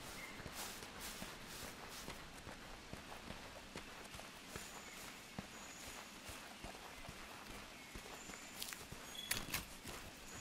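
Footsteps crunch steadily over undergrowth as a character runs.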